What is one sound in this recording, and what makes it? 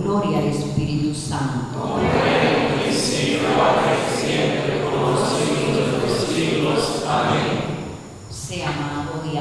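An elderly woman speaks calmly into a microphone, heard through loudspeakers in an echoing room.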